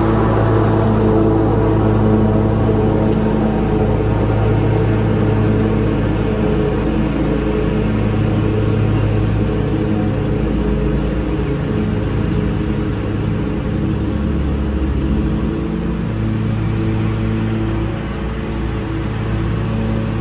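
A lawn mower engine drones steadily and slowly grows fainter as it moves away.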